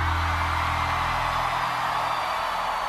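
An electric bass guitar plays low notes through loudspeakers.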